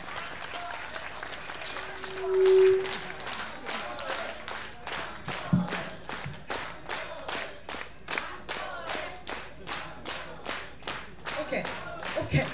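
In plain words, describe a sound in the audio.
An audience claps along in a steady rhythm.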